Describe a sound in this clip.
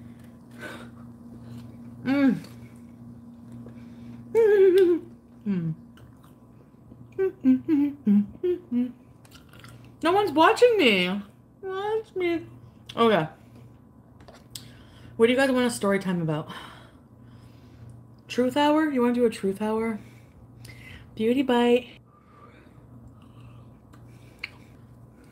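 A young woman chews food with wet smacking sounds.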